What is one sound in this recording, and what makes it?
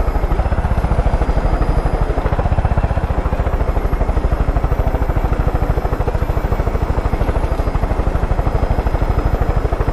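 Helicopter rotor blades thump rapidly and steadily.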